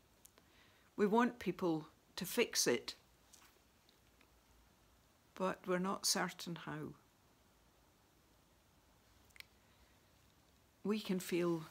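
An older woman speaks calmly and close to a microphone, with pauses.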